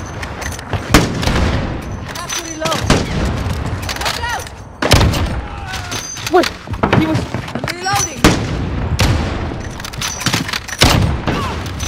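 A sniper rifle fires with loud booming shots.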